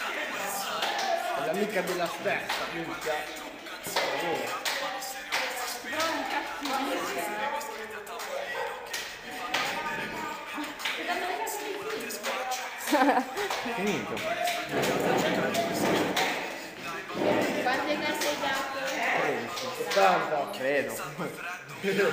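Two girls clap hands together in a quick rhythm.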